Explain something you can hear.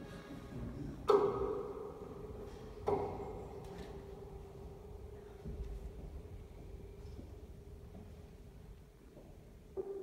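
A grand piano plays, with struck notes ringing out and slowly dying away.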